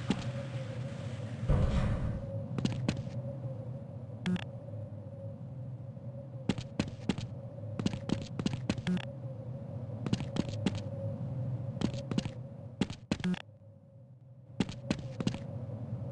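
Footsteps clank on a metal floor.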